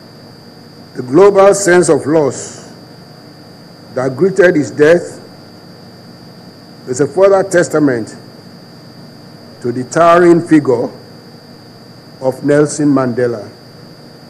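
A middle-aged man speaks slowly into a microphone in short phrases with pauses.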